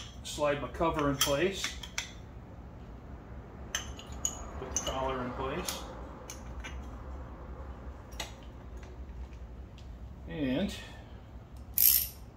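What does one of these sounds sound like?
Metal parts click and clink together.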